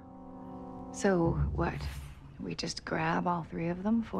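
A woman speaks softly and slowly.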